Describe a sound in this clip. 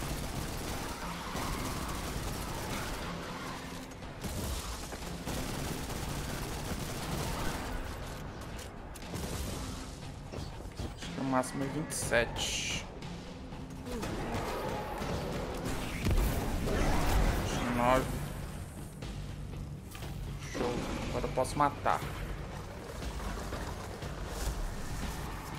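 Game gunfire bursts rapidly.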